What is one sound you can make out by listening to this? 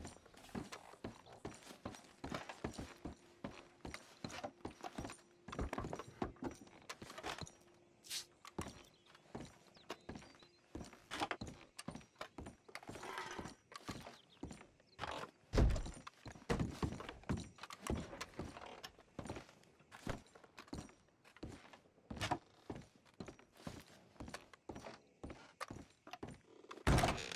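Boots thump on wooden stairs and floorboards in a steady walking rhythm.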